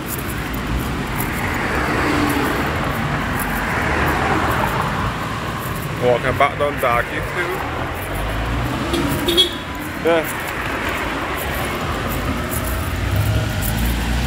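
Cars pass close by on a street.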